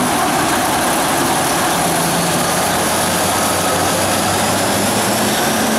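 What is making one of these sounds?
A diesel locomotive rolls slowly away, its engine sound fading.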